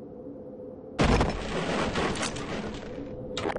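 Wooden boards smash and splinter apart.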